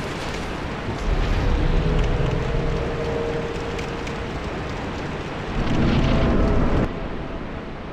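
A burst of flame roars loudly.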